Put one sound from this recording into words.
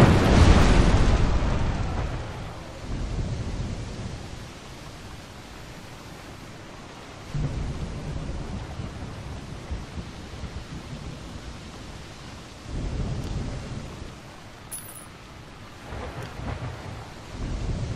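Sea waves roll and wash steadily.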